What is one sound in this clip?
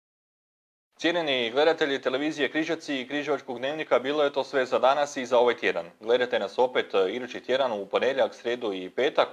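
A man speaks calmly and clearly into a microphone, reading out.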